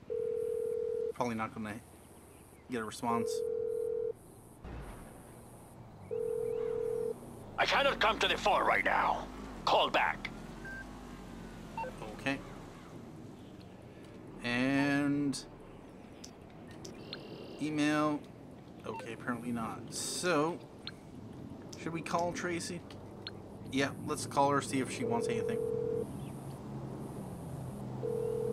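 A phone ringing tone sounds in long, even beeps with pauses between them.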